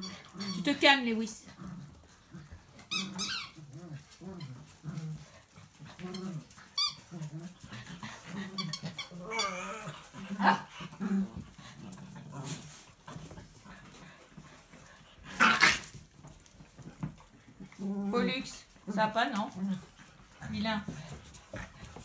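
Small dogs whine and yelp close by.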